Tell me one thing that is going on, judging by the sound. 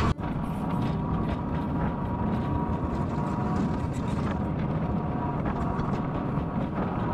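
A small vehicle's engine hums and rumbles steadily while driving.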